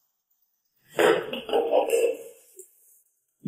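A young woman speaks sharply.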